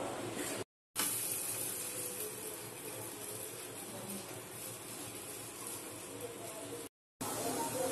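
Liquid bubbles as it boils.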